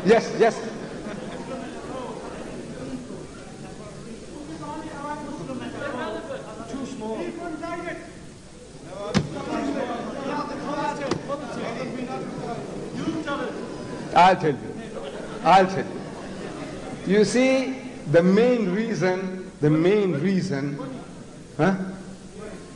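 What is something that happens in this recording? An elderly man speaks with animation through a microphone in a large hall.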